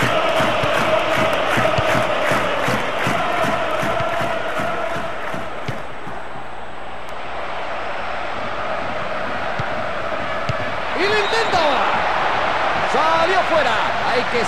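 A stadium crowd roars and cheers steadily.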